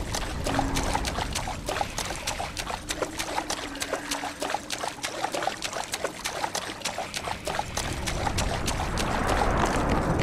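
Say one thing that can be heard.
Heavy footsteps splash through shallow water.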